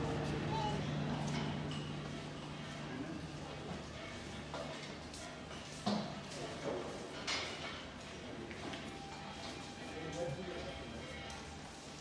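Dishes and cutlery clink and clatter nearby.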